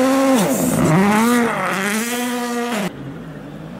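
Tyres hiss and spray snow as a car speeds past.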